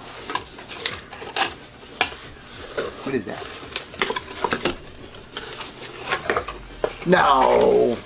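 Cardboard rustles and taps as a box is handled.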